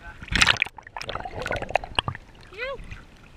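Water gurgles and bubbles close by.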